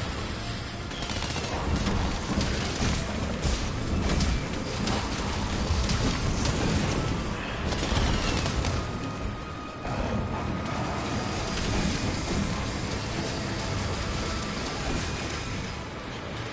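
Heavy blows and crashes thud as a huge beast is fought.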